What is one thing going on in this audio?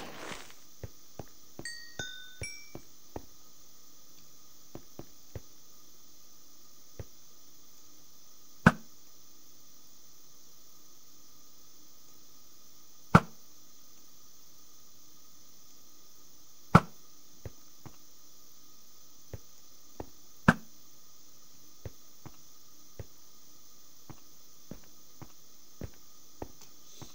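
Footsteps tap softly on stone.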